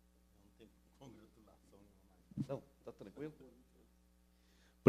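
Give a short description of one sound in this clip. A man talks quietly off the microphone in the background.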